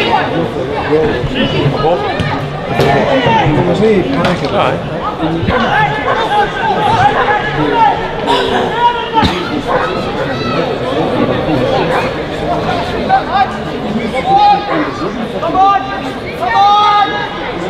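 A crowd of spectators chatters and calls out close by, outdoors.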